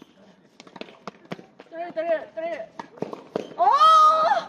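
A tennis ball is struck by a racket with sharp pops.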